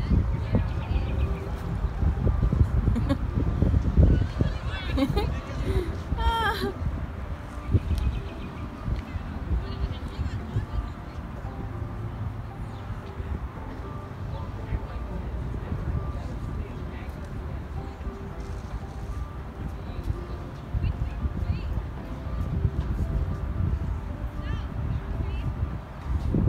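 Children talk and call out nearby outdoors.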